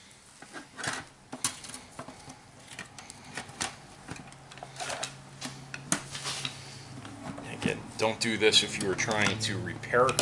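Metal parts clink and scrape as they are handled.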